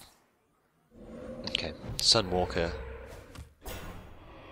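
A magic spell bursts with a whooshing blast.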